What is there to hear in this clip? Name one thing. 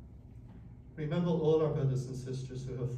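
An elderly man speaks calmly and with feeling.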